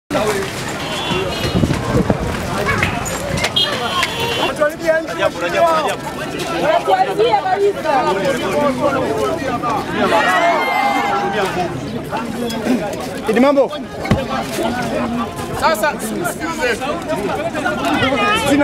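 A crowd murmurs and shouts.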